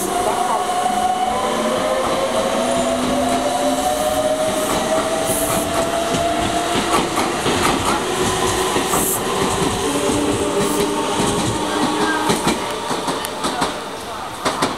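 Train wheels clatter over rail joints as the train passes close by.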